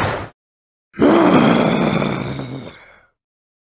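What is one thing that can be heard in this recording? A heavy metallic burst rings out and slowly fades.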